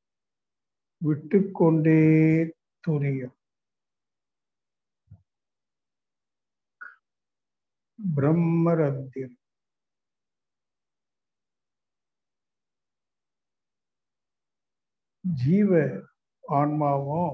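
An elderly man speaks slowly and calmly in pauses, heard through an online call.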